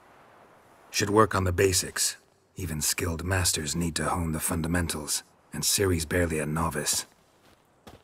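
A man speaks calmly in a low, gravelly voice.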